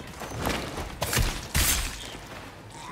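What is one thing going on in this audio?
A heavy blow lands with a loud thud.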